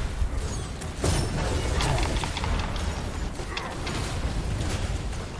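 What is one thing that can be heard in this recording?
Fiery blasts roar and crackle in a game.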